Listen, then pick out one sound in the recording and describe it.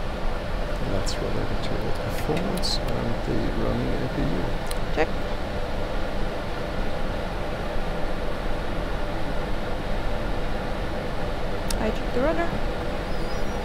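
A man speaks calmly through a headset intercom.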